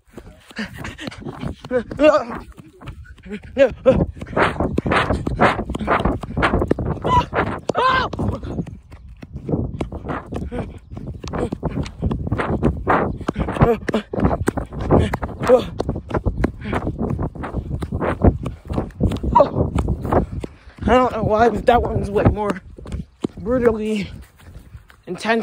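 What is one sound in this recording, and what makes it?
Footsteps crunch and swish through dry grass close by.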